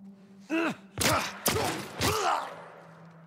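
Gunshots crack loudly in quick succession.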